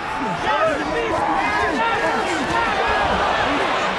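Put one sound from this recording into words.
Gloved punches land with dull thuds.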